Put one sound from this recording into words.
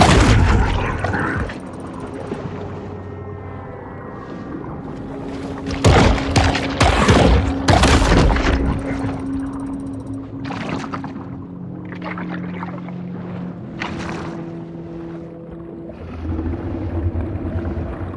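Muffled underwater ambience rumbles steadily.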